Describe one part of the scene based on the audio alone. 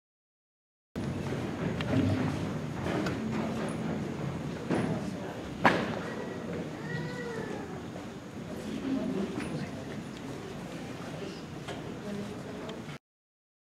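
A shamisen is plucked in a large hall.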